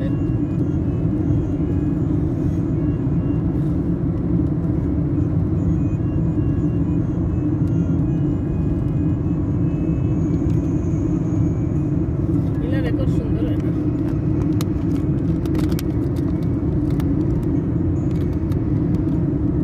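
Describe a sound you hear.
A car's engine and tyres rumble steadily on the road.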